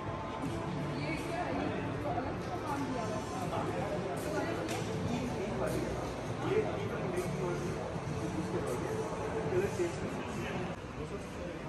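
A crowd of visitors murmurs in a large echoing hall.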